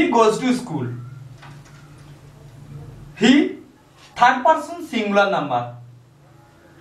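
A man speaks clearly and deliberately close by, explaining.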